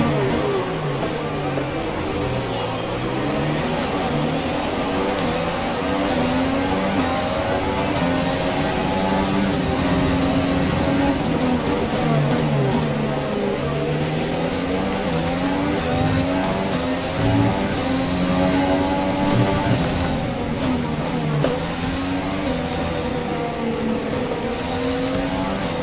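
A racing car engine screams, rising and falling in pitch as it shifts gears.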